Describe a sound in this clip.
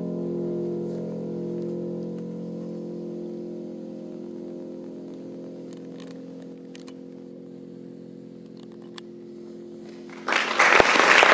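A piano chord rings out and slowly fades.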